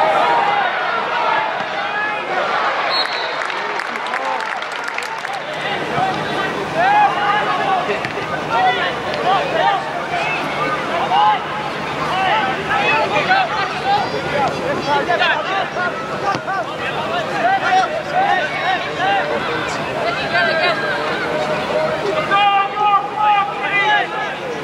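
A crowd of spectators cheers and chants outdoors in a stadium.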